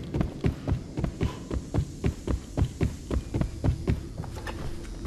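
Footsteps thud quickly down wooden stairs.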